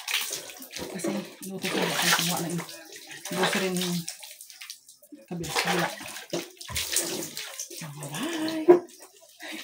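Water splashes as it is poured from a scoop.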